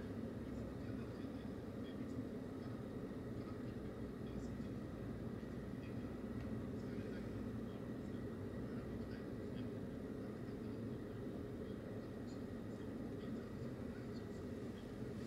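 A car engine idles steadily from inside the car.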